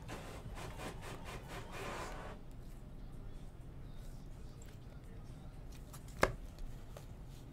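Trading cards slide and flick against each other as they are shuffled by hand.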